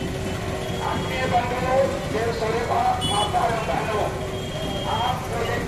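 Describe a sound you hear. A crowd of women sing together outdoors.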